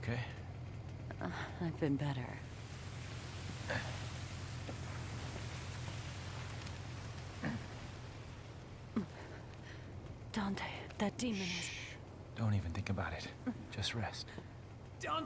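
A woman speaks softly and wearily, close by.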